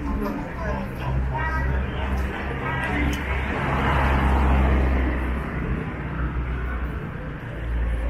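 Cars drive past on a city street.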